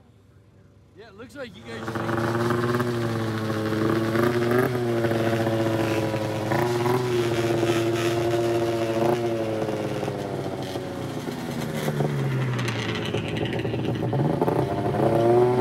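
A snowmobile engine sputters to life and idles loudly close by, revving now and then.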